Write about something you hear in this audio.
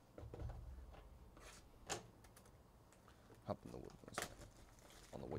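Plastic wrap crinkles and rustles as hands handle a sealed box.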